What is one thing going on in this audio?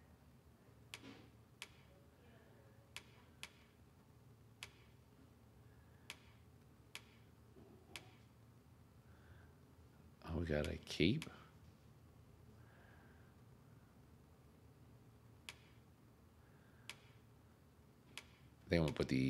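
A game menu ticks softly as the selection moves.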